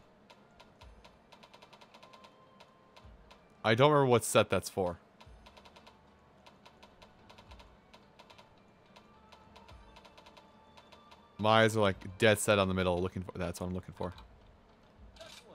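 Soft menu clicks tick rapidly.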